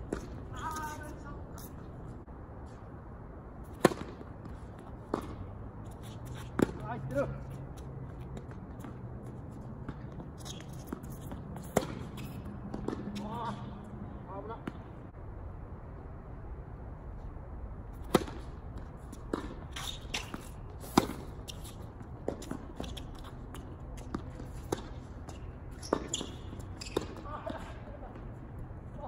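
Sneakers scuff and squeak on a hard court.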